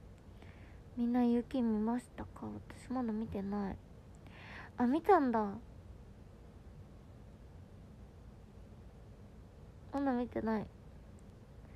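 A young woman speaks softly and closely, muffled behind her hands.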